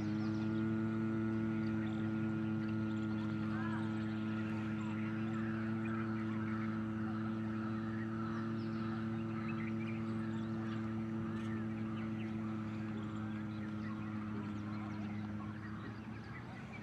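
A man hums a long, steady low note.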